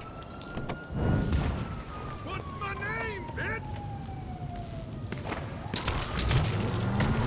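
A car engine revs as the car drives off.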